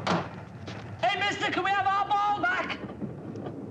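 An elderly man speaks in a raised, indignant voice.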